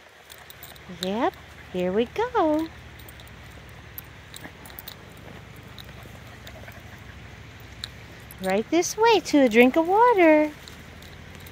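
A puppy whines in high, rising and falling cries.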